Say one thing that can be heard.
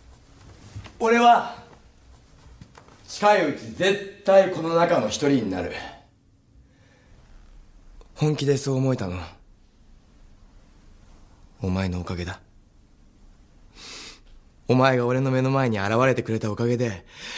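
A young man speaks softly and earnestly, close by.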